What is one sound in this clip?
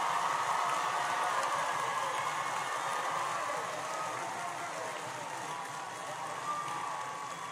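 A large crowd cheers loudly in a big open space.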